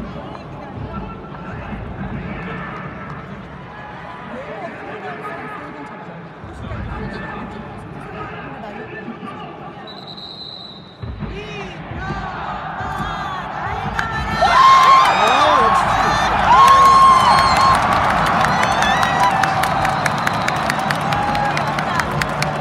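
A large crowd murmurs in a big echoing stadium.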